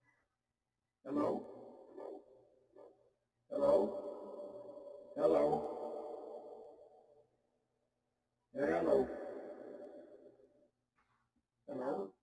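An acoustic guitar is strummed in single chords that ring out and fade.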